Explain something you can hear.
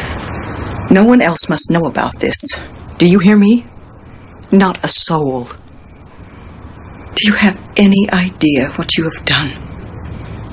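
A middle-aged woman speaks firmly and close by.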